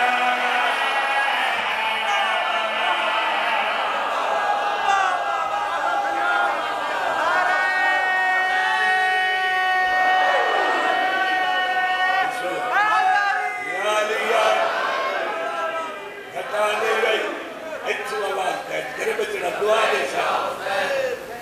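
A man chants a lament loudly through a loudspeaker in an echoing hall.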